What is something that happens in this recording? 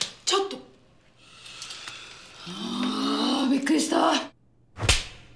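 A woman speaks softly and teasingly close by.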